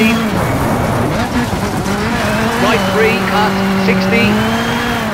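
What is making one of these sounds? Tyres crunch and hiss on loose gravel.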